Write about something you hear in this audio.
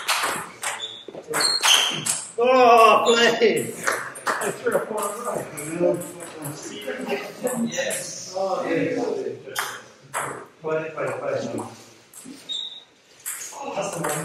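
A table tennis ball clicks back and forth off bats and a table.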